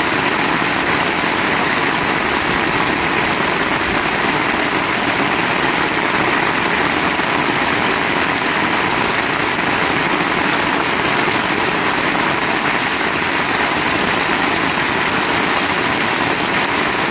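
Rain splashes on a wet road.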